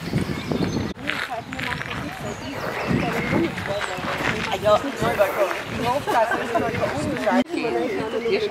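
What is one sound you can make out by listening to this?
An elderly woman talks calmly nearby.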